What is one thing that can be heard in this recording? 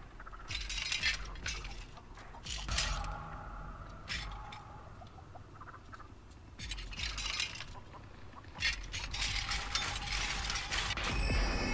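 Objects rattle and clatter as a drawer is searched.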